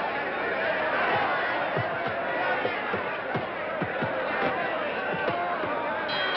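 Boxing gloves thud in quick punches.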